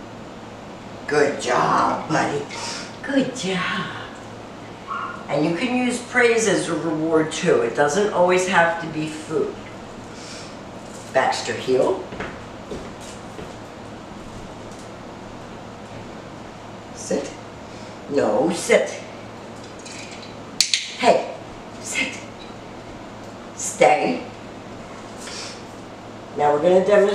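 A woman speaks calmly to a dog nearby.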